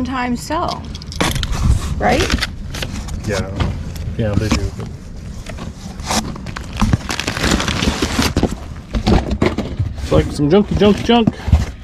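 Plastic wrapping and clothes rustle.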